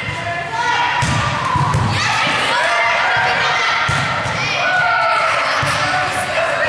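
A volleyball is struck with hard slaps that echo in a large hall.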